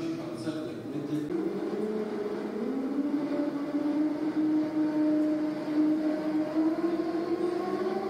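A television plays sound nearby.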